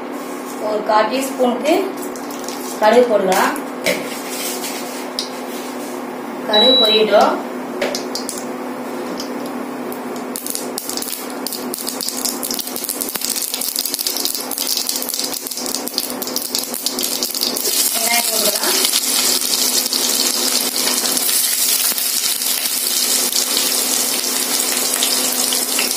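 Hot oil sizzles and spits steadily in a pan, growing louder.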